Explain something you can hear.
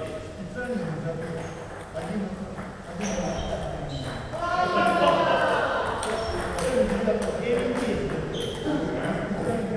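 A ping pong ball clicks back and forth off paddles and a table.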